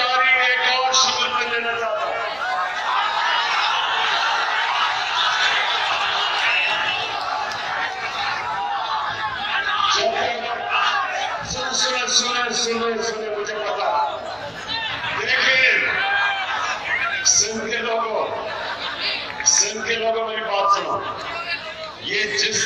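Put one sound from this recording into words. A man speaks forcefully into a microphone over a loudspeaker.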